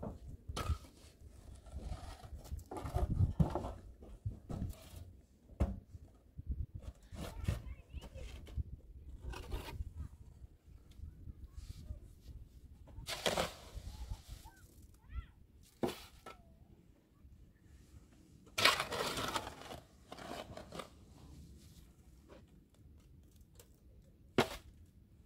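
A trowel taps and scrapes on concrete blocks.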